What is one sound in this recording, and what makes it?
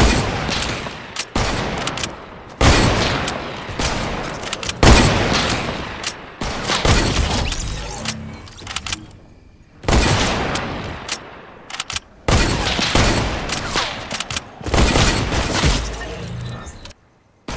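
Gunshots fire in quick bursts with a ringing echo.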